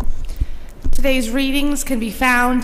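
A woman sings into a microphone in an echoing hall.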